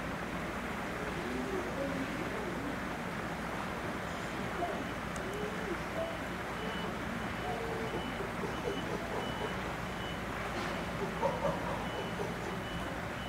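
Chimpanzees give soft hoots and grunts.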